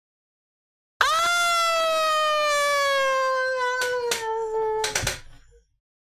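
A young man lets out a long, drawn-out cry into a microphone that slowly drops in pitch.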